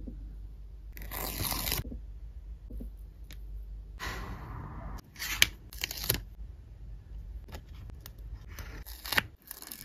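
Stickers peel off a sheet with a soft crackle.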